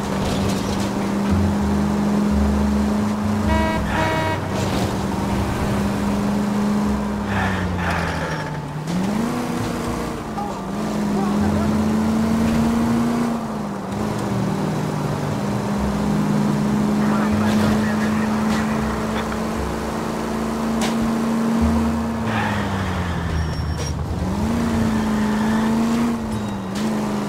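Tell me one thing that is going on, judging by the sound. A vintage sedan's engine drones as the car drives, its pitch dropping and rising again with each gear change.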